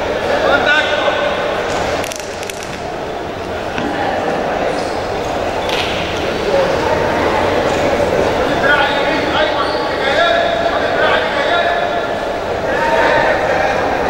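A crowd chatters and calls out throughout a large echoing hall.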